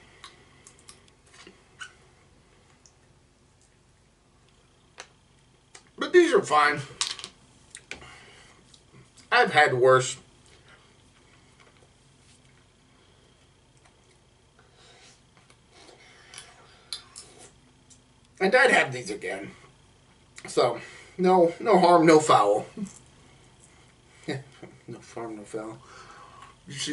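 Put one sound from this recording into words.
A man chews and crunches snack food.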